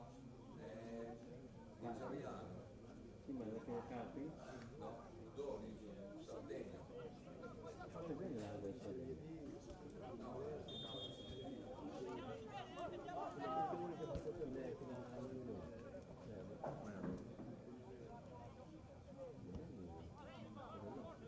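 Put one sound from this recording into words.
Young men shout to each other outdoors in the distance.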